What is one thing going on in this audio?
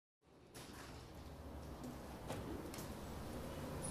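A chest freezer lid swings open.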